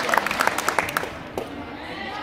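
Hands clap quickly in a short burst.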